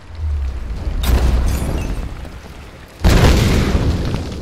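A fiery explosion booms loudly.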